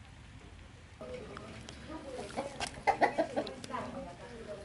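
Hens cluck close by.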